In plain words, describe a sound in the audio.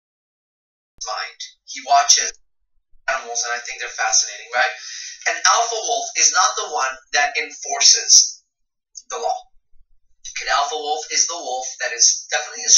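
A middle-aged man speaks calmly, close to the microphone.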